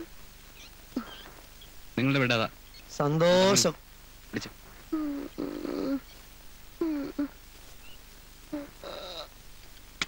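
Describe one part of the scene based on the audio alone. A man speaks in short, emotional bursts.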